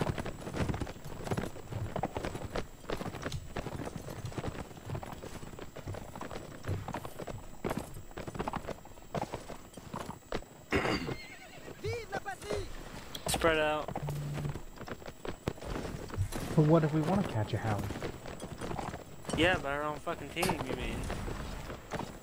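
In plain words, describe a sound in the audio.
Horse hooves thud steadily on snow.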